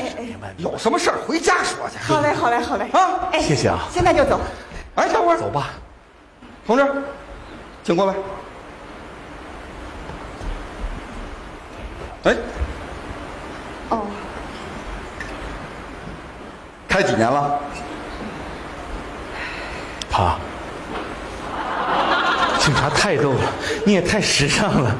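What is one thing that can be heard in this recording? A middle-aged man talks with animation through a stage microphone.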